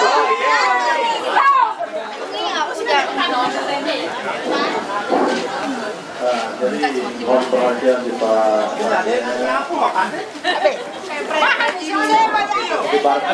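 A crowd of women and men chatter nearby outdoors.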